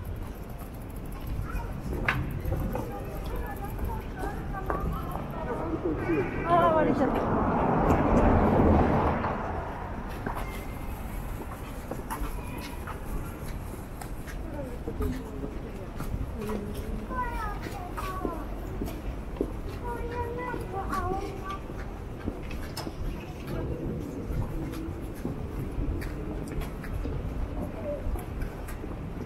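Footsteps tap on the pavement close by.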